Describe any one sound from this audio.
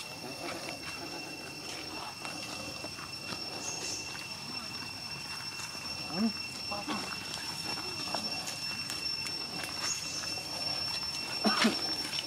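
Small feet patter on dry dirt and leaves.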